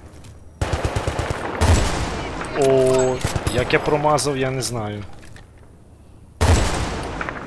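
A rifle fires with a loud, sharp crack.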